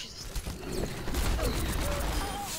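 A blast goes off in a video game.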